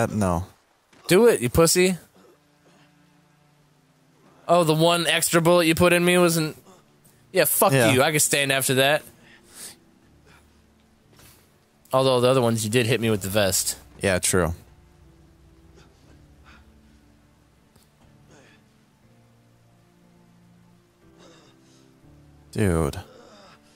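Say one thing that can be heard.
A young man speaks with strain and pain, close by.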